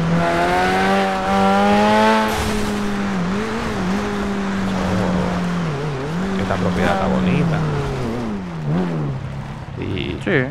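A car engine revs and drones, dropping in pitch as the car slows.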